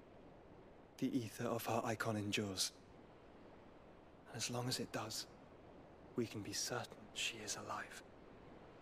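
A young man speaks calmly and gravely.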